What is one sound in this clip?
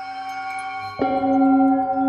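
A mallet strikes a singing bowl once, sharply.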